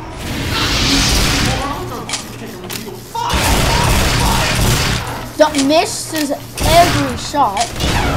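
An electric weapon crackles and buzzes.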